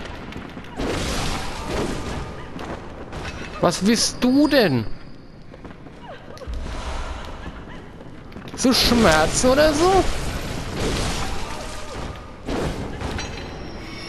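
A blade swishes and slashes into flesh.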